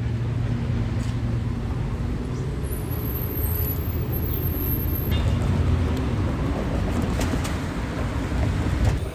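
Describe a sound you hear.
A bus engine rumbles as the bus pulls up close by.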